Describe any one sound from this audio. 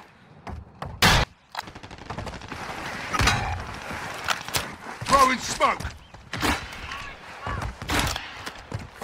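A rifle fires loud, sharp shots now and then.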